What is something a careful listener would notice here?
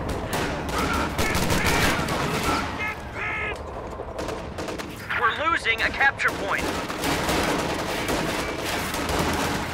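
Rifles fire in sharp, rapid shots.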